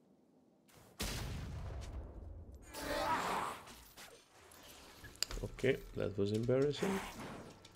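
Spell effects whoosh and crackle during a fight.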